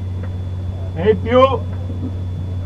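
A middle-aged man speaks briefly close by.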